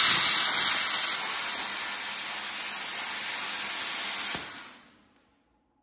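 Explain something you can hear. An angle grinder cuts into metal with a loud, high whine.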